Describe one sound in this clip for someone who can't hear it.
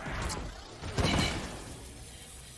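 A loud burst booms once.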